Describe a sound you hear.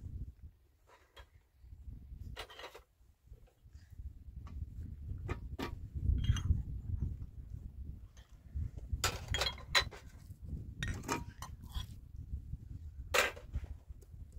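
Metal dishes and glasses clink and rattle close by.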